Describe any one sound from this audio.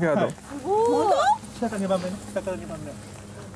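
Young women exclaim and laugh close by.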